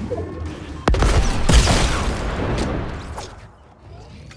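A rocket explodes in a video game with a loud boom.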